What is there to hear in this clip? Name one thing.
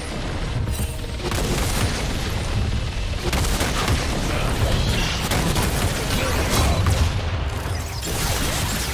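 Magic blasts and hits crackle and thump in a fast fight.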